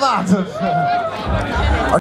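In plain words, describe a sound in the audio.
A young man laughs loudly up close.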